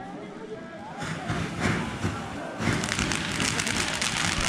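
A firework bursts with loud crackling bangs.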